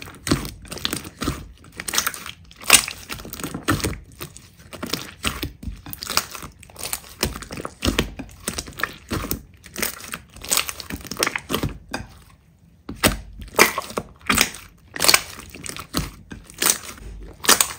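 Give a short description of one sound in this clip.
Hands squish and squelch wet slime, with sticky popping and crackling sounds.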